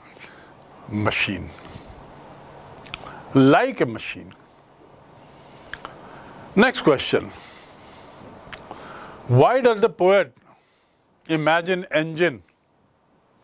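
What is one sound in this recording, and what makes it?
A middle-aged man speaks calmly and slowly, close to a microphone, with long pauses.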